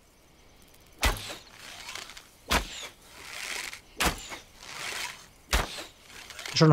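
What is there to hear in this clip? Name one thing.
A bow twangs as arrows are shot one after another.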